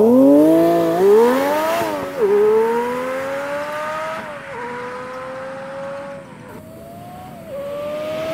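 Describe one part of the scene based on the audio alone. A sports car accelerates hard away, its engine rising through the gears and fading into the distance.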